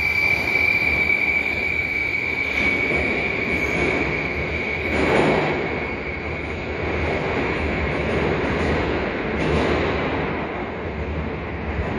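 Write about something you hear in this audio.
Train wheels clatter on the rails as a subway train leaves.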